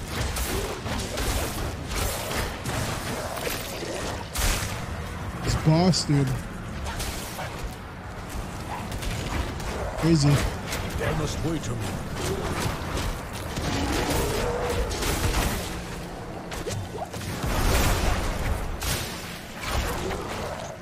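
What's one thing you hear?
Weapon strikes thud and clang repeatedly.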